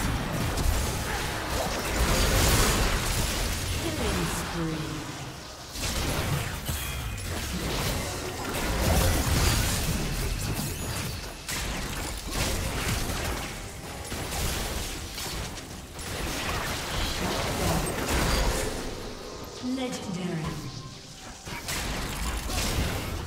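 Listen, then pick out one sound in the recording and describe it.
Magic blasts whoosh and crackle during a fast game battle.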